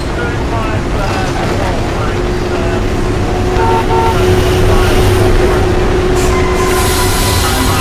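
A train rumbles past close by.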